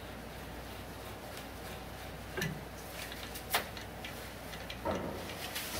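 A sanding pad scrapes against a spinning piece.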